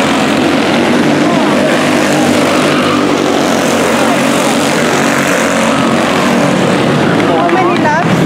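Small racing kart engines buzz loudly as the karts speed around a track.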